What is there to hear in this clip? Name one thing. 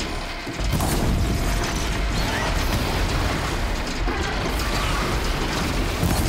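A bowstring twangs as arrows fly.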